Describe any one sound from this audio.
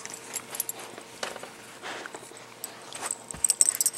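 A dog chews on a squeaky toy.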